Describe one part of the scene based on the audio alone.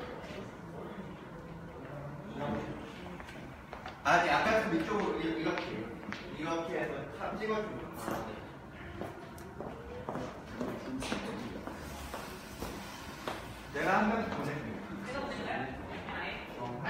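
Bare feet pad softly on a hard floor.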